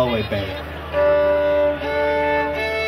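An accordion starts to play.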